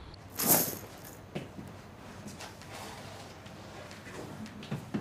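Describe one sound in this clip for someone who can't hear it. Footsteps tap softly across a floor.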